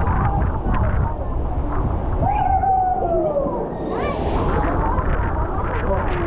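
Water rushes down a water slide.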